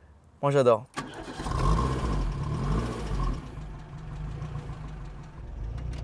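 A car engine idles with a low, steady rumble from the exhaust.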